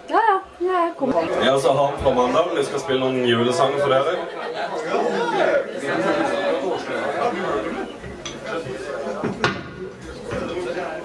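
A band plays loud rock music.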